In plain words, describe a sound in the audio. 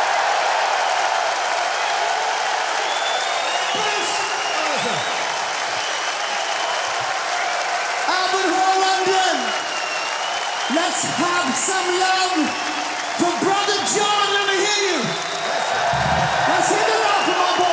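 A large crowd cheers and shouts in a big echoing hall.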